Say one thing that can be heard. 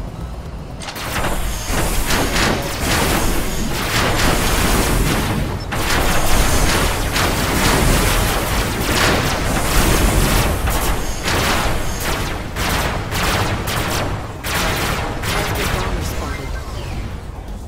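A heavy engine rumbles steadily.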